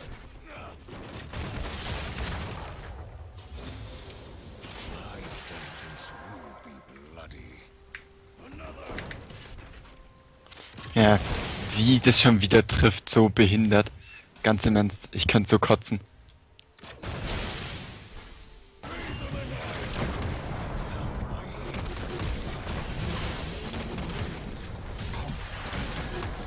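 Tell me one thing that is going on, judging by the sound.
Video game spell effects burst and clash in a fight.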